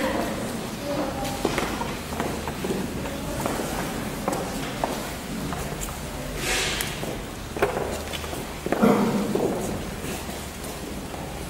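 Footsteps shuffle and tap on a hard floor.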